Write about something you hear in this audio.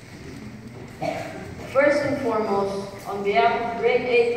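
A boy speaks into a microphone, heard over loudspeakers in a large hall.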